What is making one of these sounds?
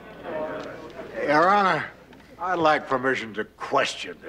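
An elderly man speaks loudly and with animation.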